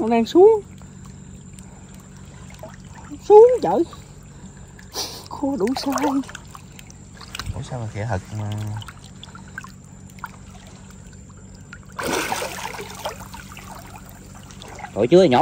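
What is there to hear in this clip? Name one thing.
Water sloshes and splashes around a man wading.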